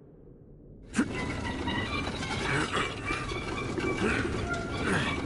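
A heavy wooden crate scrapes across a stone floor.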